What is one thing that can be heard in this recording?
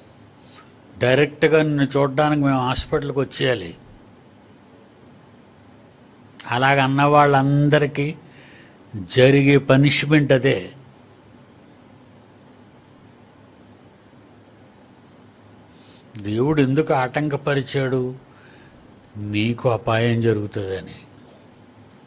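An elderly man speaks calmly into a close microphone, in short bursts with pauses.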